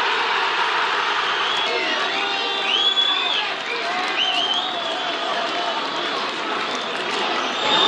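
A large stadium crowd roars and chants steadily outdoors.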